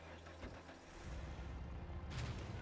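A vehicle engine starts and rumbles deeply.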